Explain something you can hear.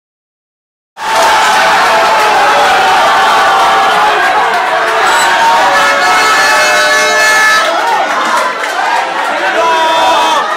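A crowd of men sings and chants loudly in an echoing room.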